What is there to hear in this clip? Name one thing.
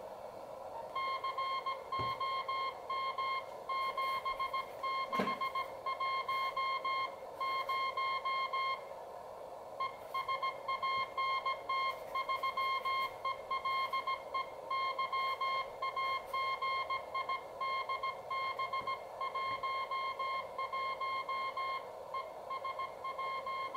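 Morse code beeps come in quick, even bursts of a high tone from a radio receiver.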